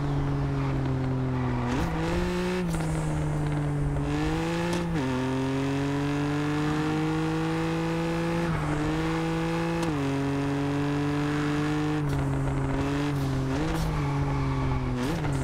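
Tyres hum on asphalt.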